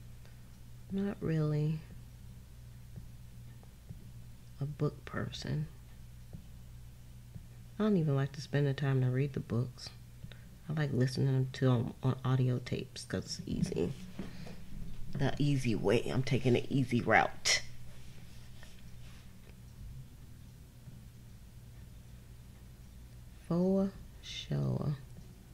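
A woman talks calmly into a nearby microphone.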